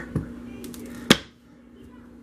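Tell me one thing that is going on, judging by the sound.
A soap cutter's arm snaps down with a sharp knock.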